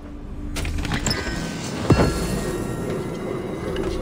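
A heavy wooden chest lid thumps open.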